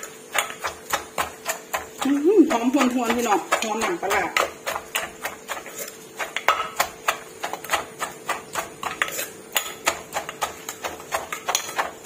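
A wooden pestle pounds steadily in a stone mortar with quick, regular knocks.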